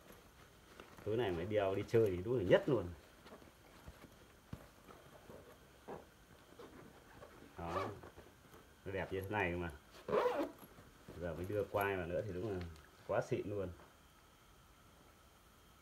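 Fabric rustles softly as a cloth bag is handled.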